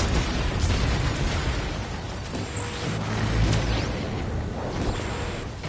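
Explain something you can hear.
Explosions and fiery blasts boom loudly in a video game.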